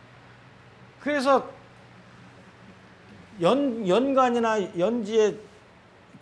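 An older man speaks calmly through a clip-on microphone.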